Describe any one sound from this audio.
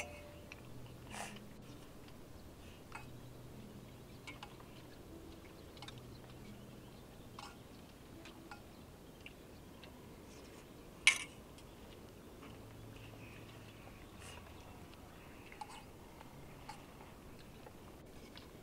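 Spoons clink against metal bowls.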